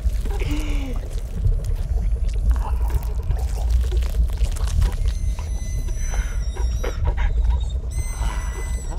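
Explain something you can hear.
A man laughs softly and menacingly, close by.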